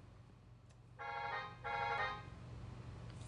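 A computer plays a few quick high notes in a synthetic woodwind sound.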